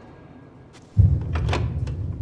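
A heavy metal lever clunks and a door mechanism rumbles loudly.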